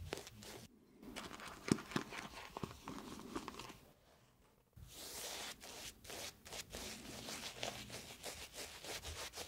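A towel rustles and brushes close to a microphone.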